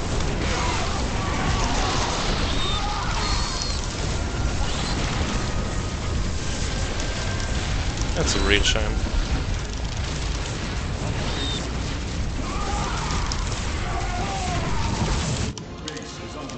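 Explosions crackle and burst amid the fighting.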